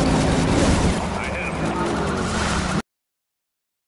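Tyres screech as a car slides on a road.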